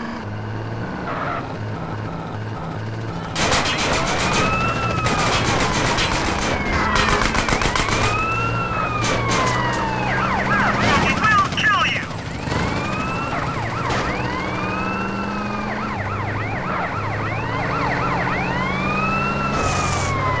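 A pickup truck engine hums steadily.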